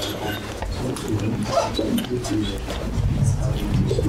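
An older man gulps water from a bottle.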